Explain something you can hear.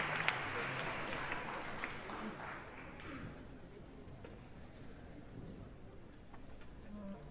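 An orchestra plays softly in a large echoing hall.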